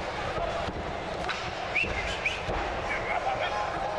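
A wrestler thuds onto the ring mat.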